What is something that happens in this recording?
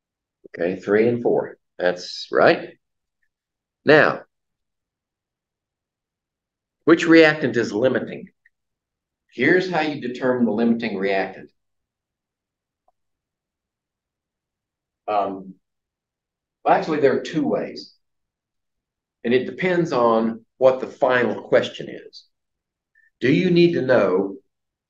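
An elderly man lectures calmly in bursts, with pauses between phrases.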